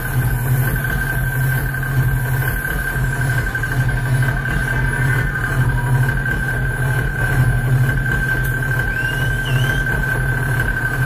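Loud electronic music plays with a deep, pulsing bass and a steady high drone.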